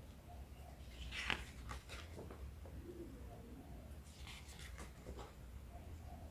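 Paper pages rustle and flap as they are turned.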